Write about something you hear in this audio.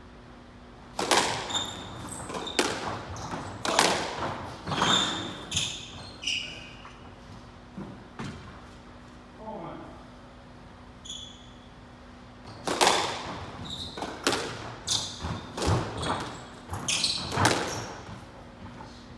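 A squash ball smacks sharply against the walls, echoing in the court.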